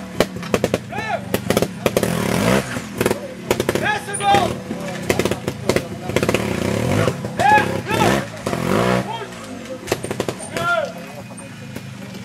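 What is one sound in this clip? A motorcycle engine revs up and down in short bursts close by.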